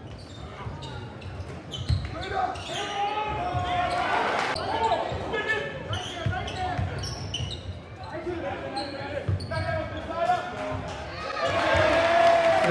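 Basketball shoes squeak on a hardwood floor.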